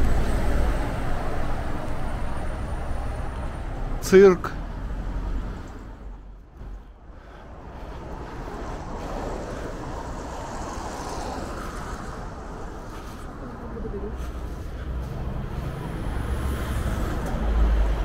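City traffic rumbles steadily along a street.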